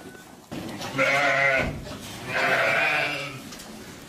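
Sheep bleat loudly.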